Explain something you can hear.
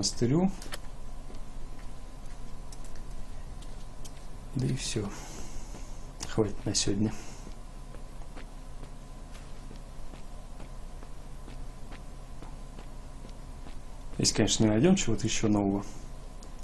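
Footsteps tap on hard pavement at a quick pace.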